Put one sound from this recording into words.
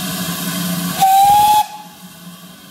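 A steam locomotive whistle shrills briefly.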